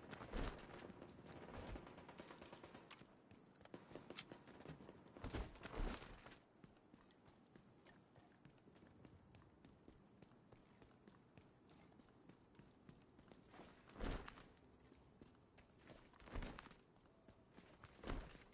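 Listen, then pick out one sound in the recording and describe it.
Footsteps run over pavement and debris.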